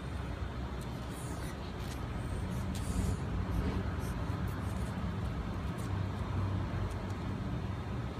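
A rubber toy squeaks as dogs pull on it.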